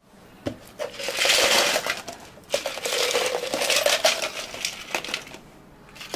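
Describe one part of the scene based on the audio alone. Ice cubes clatter into plastic cups.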